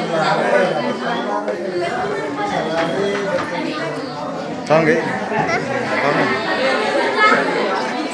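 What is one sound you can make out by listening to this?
A young girl speaks aloud before a seated group.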